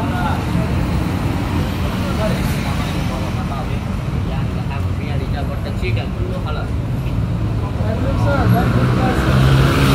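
Men chatter nearby.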